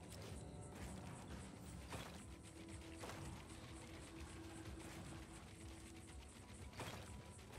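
Footsteps patter on a wooden floor.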